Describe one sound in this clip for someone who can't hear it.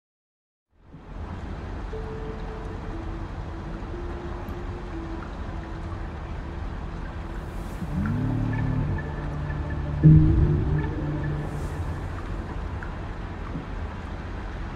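Soft, calm electronic tones play.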